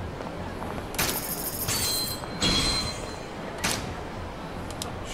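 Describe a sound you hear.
Menu chimes ring out.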